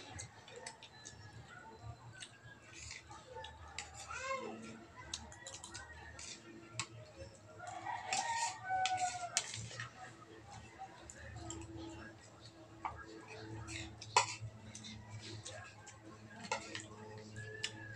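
Spoons and forks clink and scrape against plates.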